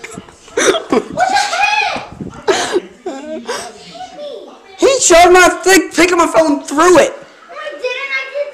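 A child talks excitedly close by.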